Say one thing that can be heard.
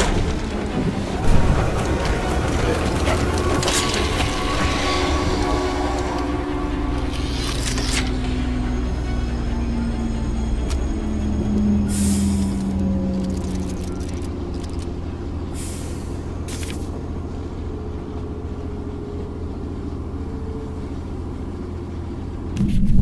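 A cart rumbles steadily along rails.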